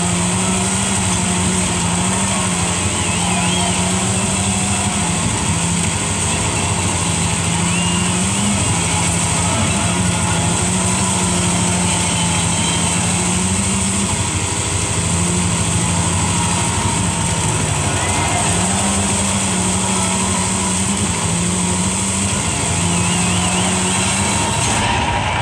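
Tyres crunch and hiss on gravel in a racing game.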